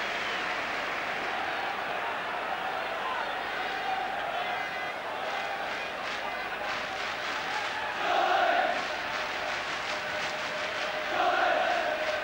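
A large stadium crowd roars and chants steadily, swelling loudly at times.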